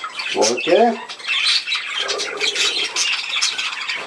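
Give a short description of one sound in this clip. A budgie's wings flutter as it flies off.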